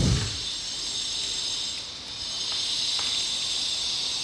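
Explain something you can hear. Fingers fiddle with a thin wire, making a soft scraping.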